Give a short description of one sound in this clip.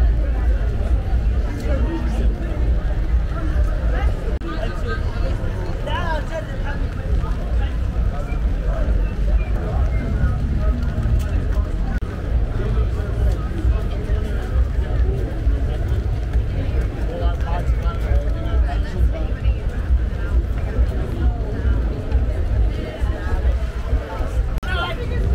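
Rain patters on wet pavement and umbrellas.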